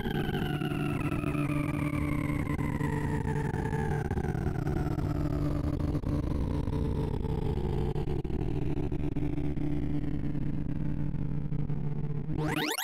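Rapid electronic tones buzz steadily while slowly falling in pitch.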